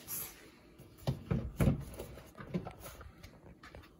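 A spatula scrapes and thumps against a metal bowl.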